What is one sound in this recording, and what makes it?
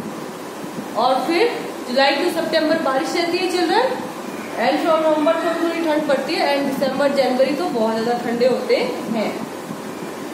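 A young woman speaks clearly and calmly, close by, as if teaching.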